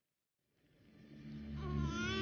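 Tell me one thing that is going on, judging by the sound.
A young woman sobs quietly.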